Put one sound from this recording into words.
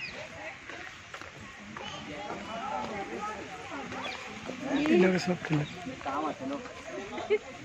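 Several men and women chat nearby outdoors.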